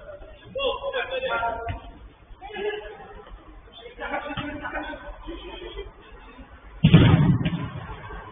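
Men shout and call out to each other, heard from a distance.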